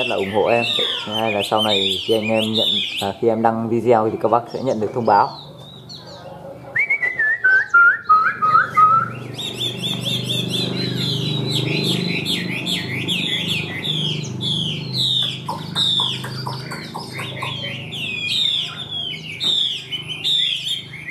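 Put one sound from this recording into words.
A songbird sings loud, varied trills and whistles close by.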